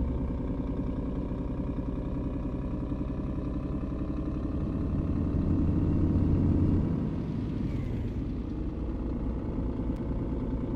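A diesel truck engine pulls at low speed, swelling and then easing off.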